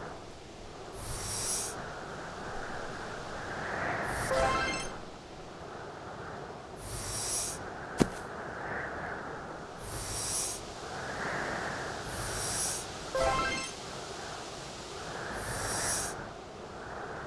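A snowball scrapes as it is pushed across ice.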